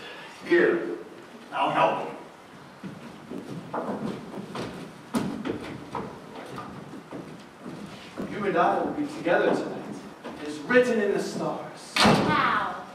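A man speaks loudly on a stage.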